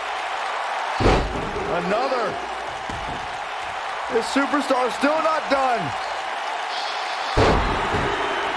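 Heavy thuds of bodies slamming onto a wrestling mat ring out.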